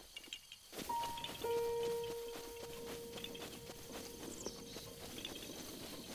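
A bright chime rings and holds briefly.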